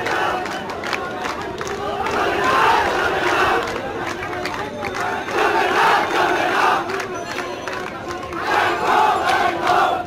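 A large crowd shouts and chants outdoors, in waves that swell and ebb.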